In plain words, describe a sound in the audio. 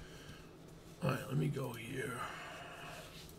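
A man speaks briefly and casually into a nearby microphone.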